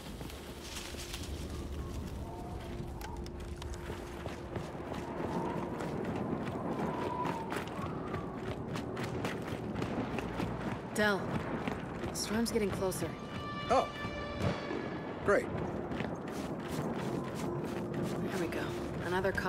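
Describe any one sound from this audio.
Boots crunch steadily through deep snow.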